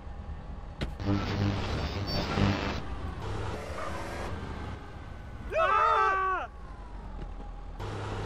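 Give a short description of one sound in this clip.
A car engine revs hard as the car pulls away.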